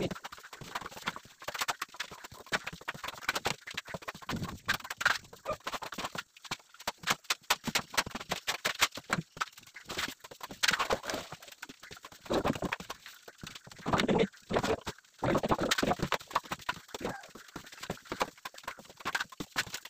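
A trowel scrapes plaster against a wall.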